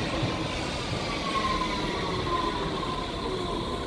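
Train brakes squeal as the train comes to a stop.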